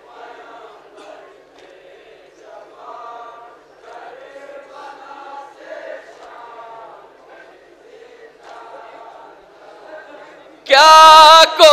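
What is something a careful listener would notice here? Men chant a mournful song through loudspeakers, faint and distant.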